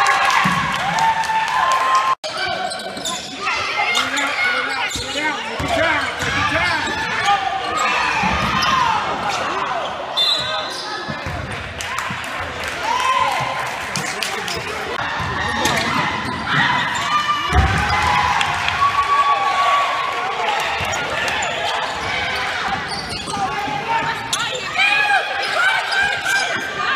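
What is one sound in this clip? Spectators shout and cheer loudly in an echoing gym.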